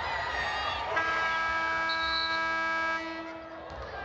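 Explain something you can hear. A buzzer sounds loudly and steadily.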